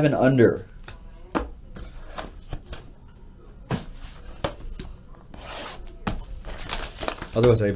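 Card packs rustle and tap as hands handle them.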